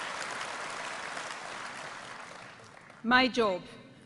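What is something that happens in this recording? A large crowd applauds in an echoing hall, then the applause fades.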